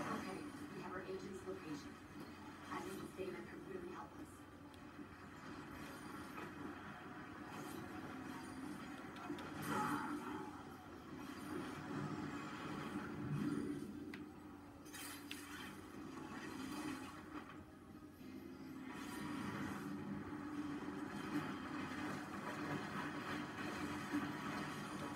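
Video game sounds play through television speakers.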